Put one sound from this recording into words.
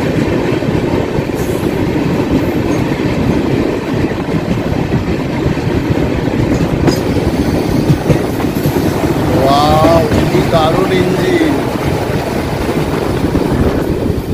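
Another train rushes past close by with a loud roar.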